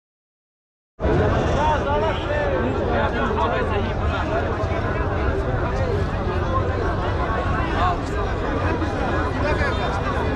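A large crowd of men chatters loudly outdoors.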